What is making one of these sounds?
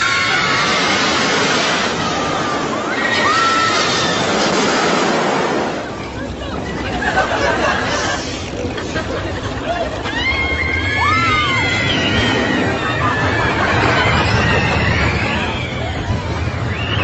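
A roller coaster rattles and roars along its track.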